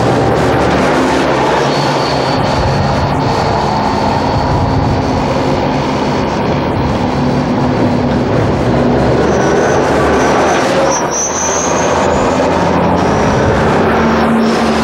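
An armoured vehicle's engine rumbles loudly close by.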